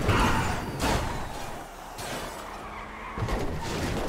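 Car tyres screech as the car skids through a turn.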